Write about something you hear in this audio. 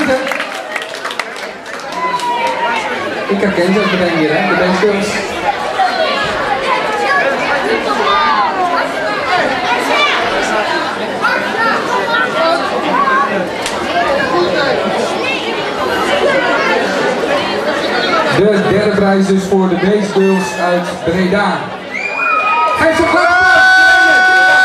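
A crowd chatters and murmurs throughout.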